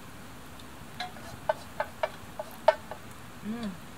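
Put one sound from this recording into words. A campfire crackles and pops nearby.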